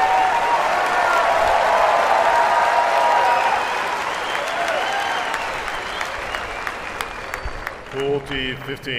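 A large crowd cheers and whistles loudly.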